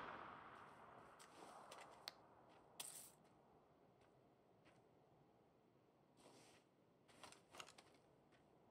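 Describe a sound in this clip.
Menu items click softly.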